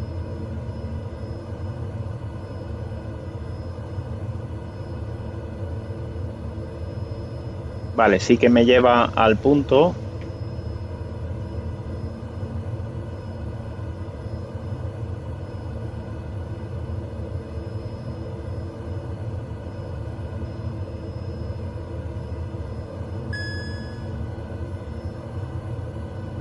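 A turboprop engine drones steadily.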